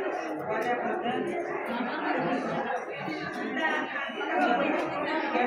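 Several women talk and murmur nearby.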